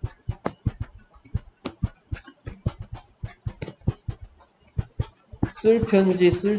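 A stylus taps and scratches against a tablet.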